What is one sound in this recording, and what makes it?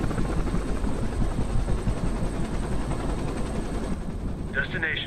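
A helicopter's rotors thump loudly.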